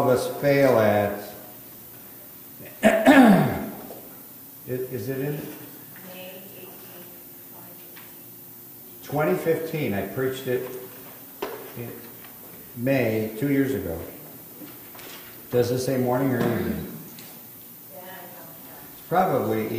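An elderly man speaks slowly and earnestly through a microphone.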